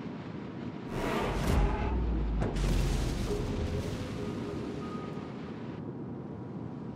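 Shells explode in the water with deep booms.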